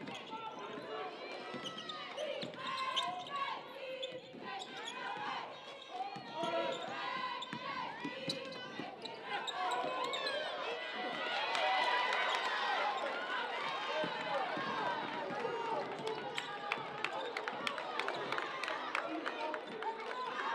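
A crowd cheers and murmurs in an echoing gym.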